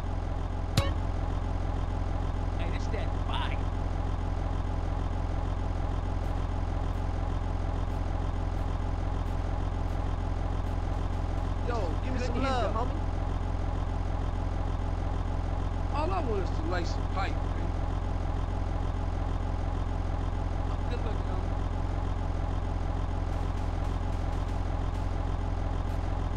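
A sports car engine idles with a steady low rumble.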